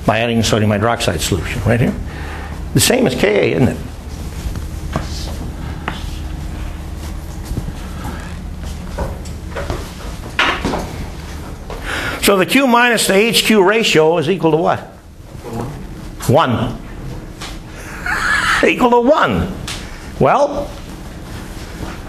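An older man lectures, speaking calmly and clearly.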